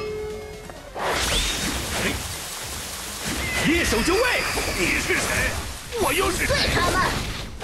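Game combat effects crash and whoosh in quick bursts.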